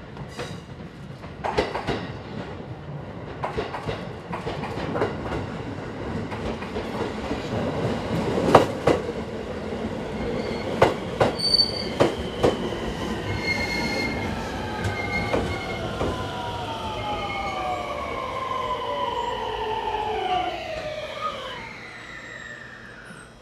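A train rumbles steadily along the tracks close by.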